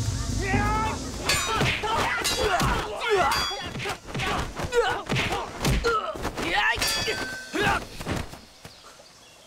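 Fist and kick blows land in a hand-to-hand fight.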